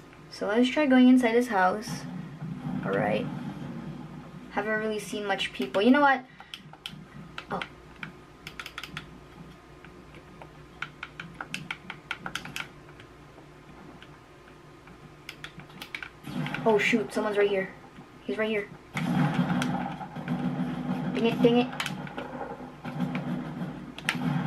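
Buttons on a game controller click softly.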